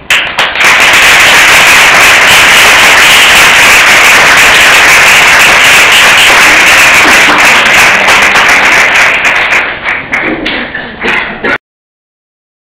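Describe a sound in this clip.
An audience claps loudly, then the clapping thins out.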